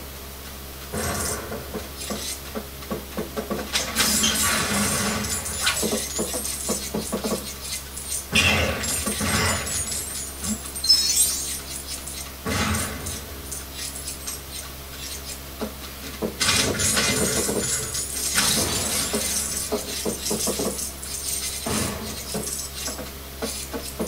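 Game explosions and blasts boom from a television speaker.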